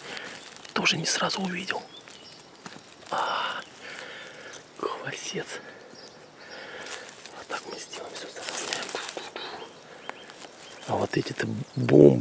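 Moss and dry leaves rustle under a hand.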